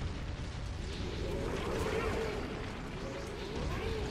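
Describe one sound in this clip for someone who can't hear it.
An energy blast roars and crackles.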